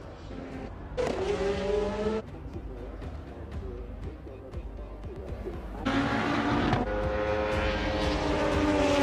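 Racing car engines roar loudly as cars speed past.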